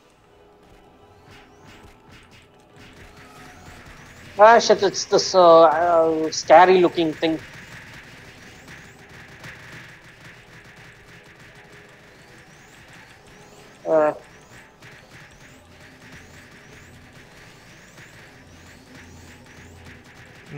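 Magic spells crackle and chime in quick bursts.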